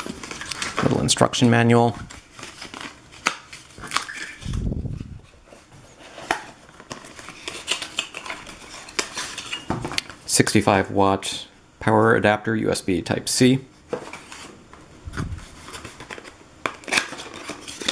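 Paper and cardboard rustle and scrape as a box is unpacked.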